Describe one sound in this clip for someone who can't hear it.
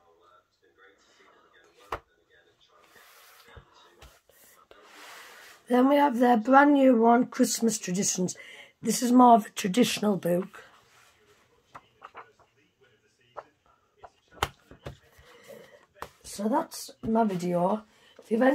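Paper rustles and slides as books are handled.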